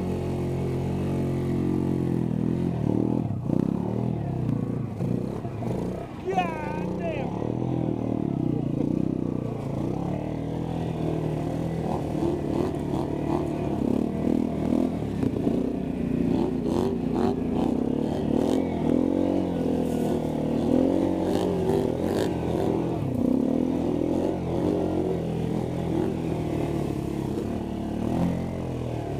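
An engine revs and rumbles loudly up close, rising and falling in pitch.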